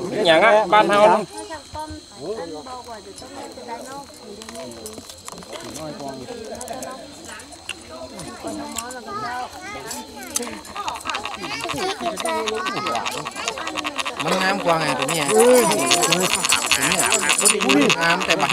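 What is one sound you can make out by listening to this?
A crowd of men talks and murmurs close by, growing louder and more excited.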